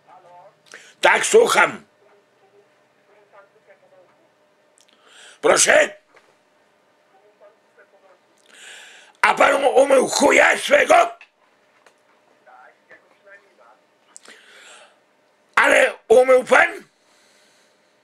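An older man speaks into a phone close by in short, animated bursts.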